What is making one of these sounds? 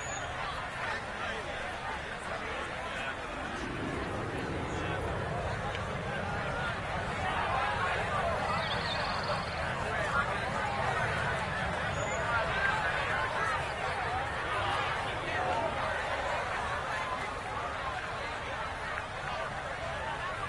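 A crowd of spectators murmurs softly outdoors.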